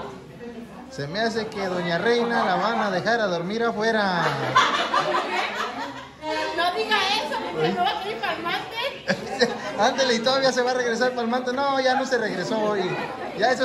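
Women laugh loudly together.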